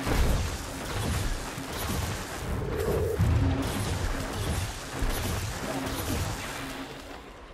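Magic spells crackle and burst in quick succession.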